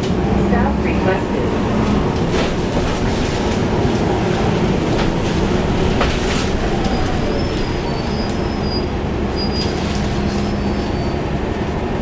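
A bus engine rumbles steadily from inside the moving bus.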